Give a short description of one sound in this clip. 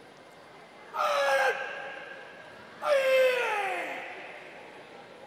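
A young man shouts loudly twice, ringing in a large echoing hall.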